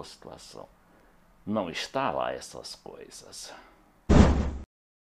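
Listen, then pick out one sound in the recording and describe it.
An elderly man speaks calmly and close up into a microphone.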